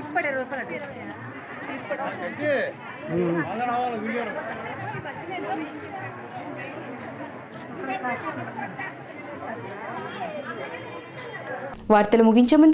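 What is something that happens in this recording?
A crowd of women chatters nearby outdoors.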